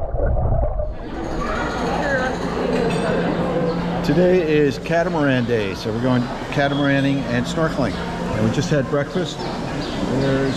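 A middle-aged man talks calmly up close.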